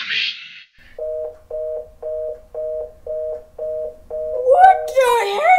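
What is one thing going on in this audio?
A mobile phone beeps.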